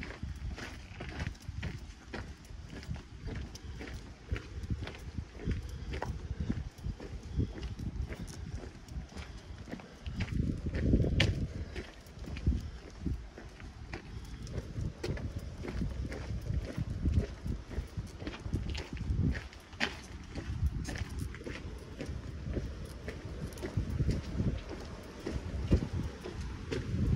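Footsteps crunch on a gravel path at a steady walking pace.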